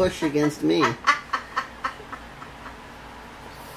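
A woman giggles softly, her laughter trailing off.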